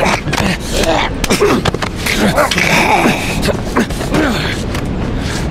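Scuffling sounds come from a close struggle.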